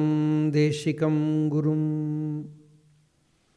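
A man chants in a sustained voice through a microphone.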